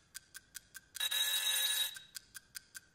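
An alarm clock bell rings loudly and briefly.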